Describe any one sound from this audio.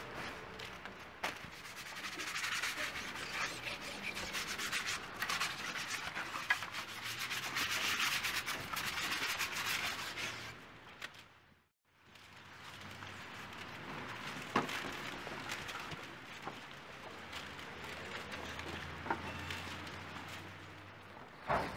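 Wet paint slaps and smears on a board.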